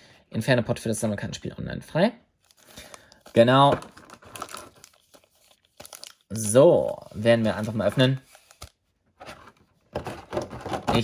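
Foil card packets crinkle and rustle as they are handled.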